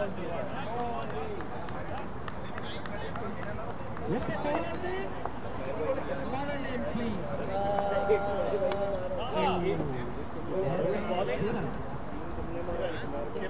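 Men talk and call out to one another outdoors at a distance.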